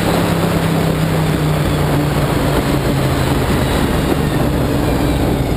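Wind buffets hard against the car.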